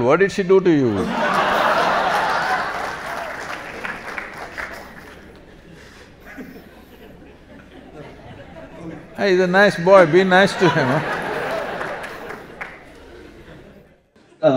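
An audience laughs and claps loudly.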